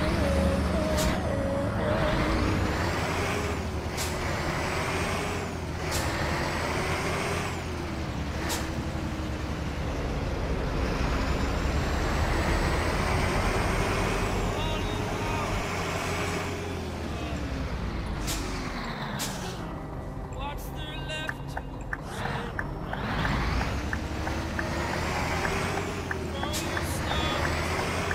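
A heavy truck engine drones steadily, rising and falling in pitch as it drives.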